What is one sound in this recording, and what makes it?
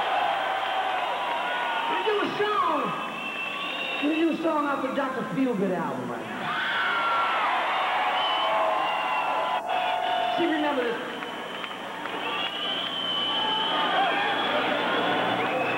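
A rock band plays loudly through a large hall's speakers.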